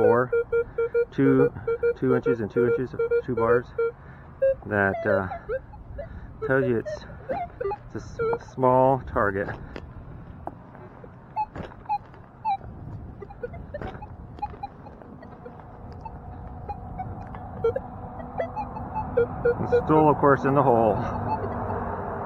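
A metal detector beeps with warbling tones.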